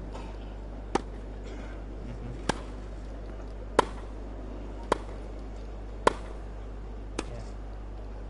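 Tennis balls are struck back and forth with sharp pops of rackets.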